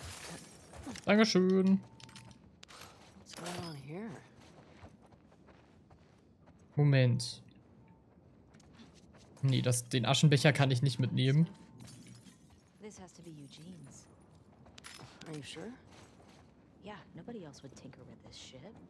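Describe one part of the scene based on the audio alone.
A young woman speaks quietly and calmly.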